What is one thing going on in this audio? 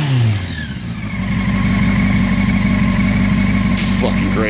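A motorcycle engine idles with a steady, throbbing rumble.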